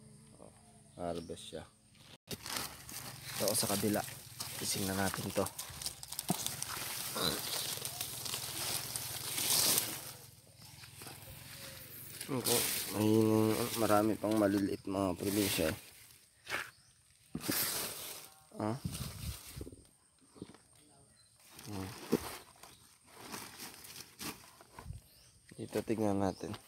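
A young man talks close by, with animation.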